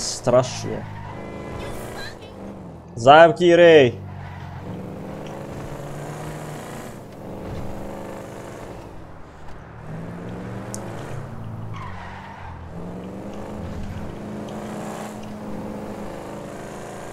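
A car engine hums and revs steadily as the car drives.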